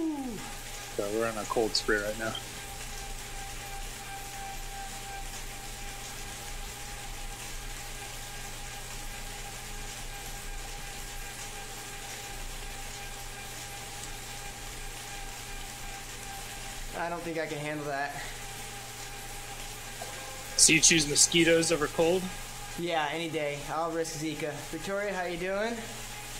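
A bike trainer whirs steadily under pedalling.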